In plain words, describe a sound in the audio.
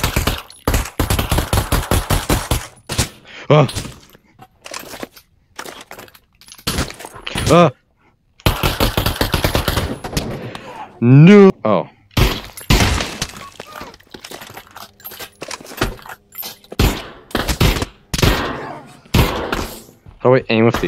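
Pistols fire in rapid bursts of sharp shots.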